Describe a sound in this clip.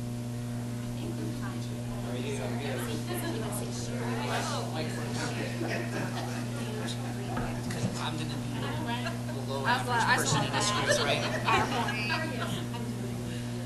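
Several men and women chat at once in a large room.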